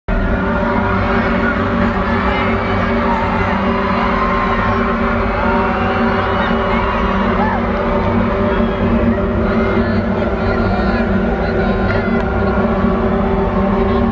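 A large crowd cheers and sings along.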